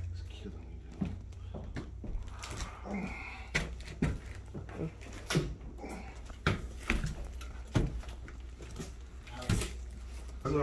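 Footsteps thud on hard stairs.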